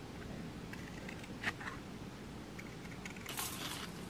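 Scissors snip through card.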